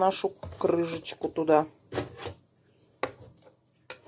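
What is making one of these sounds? A metal spoon scrapes and clinks against a lid in water.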